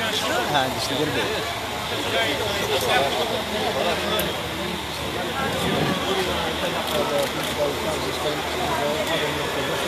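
A crowd of men and women shout and talk over each other close by.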